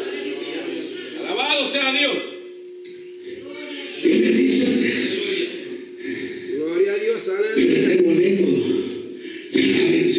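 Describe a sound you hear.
A middle-aged man preaches with passion through a microphone and loudspeakers in an echoing hall.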